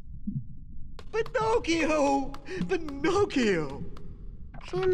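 A boy calls out anxiously.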